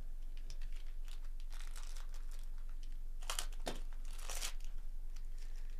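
A foil wrapper crinkles and tears as a pack is ripped open.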